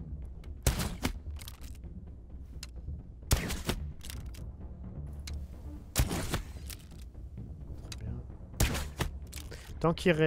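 A crossbow is reloaded with clicks and rattles.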